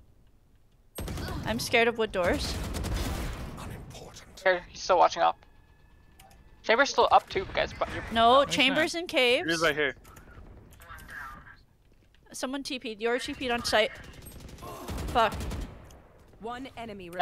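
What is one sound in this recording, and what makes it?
A rifle fires in short rapid bursts.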